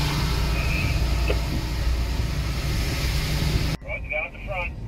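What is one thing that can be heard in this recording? Rain patters steadily on a car's windscreen.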